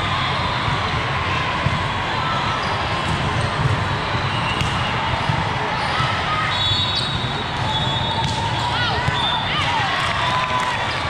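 Shoes squeak sharply on a court floor.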